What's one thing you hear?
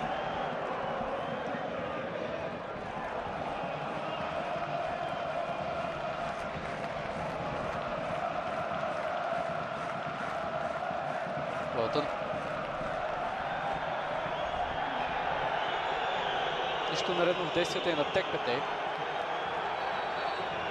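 A large stadium crowd chants and sings steadily.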